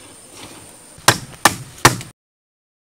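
Wood knocks sharply several times.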